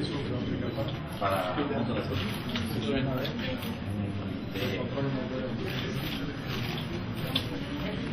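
A man speaks through a loudspeaker.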